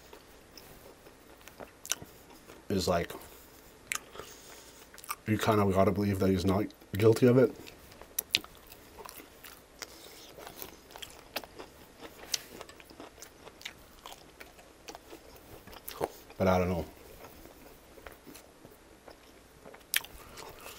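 Crispy food crackles between fingers, close up.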